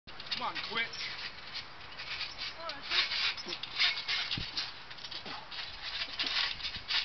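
Trampoline springs creak under bouncing.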